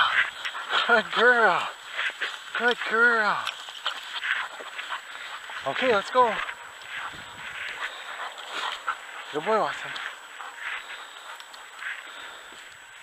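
Footsteps crunch over rough, stubbly soil.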